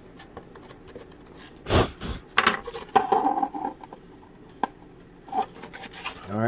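Thin wooden pieces click and tap together up close.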